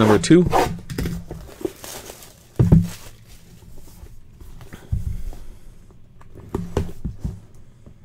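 Cardboard boxes knock and scrape as they are handled.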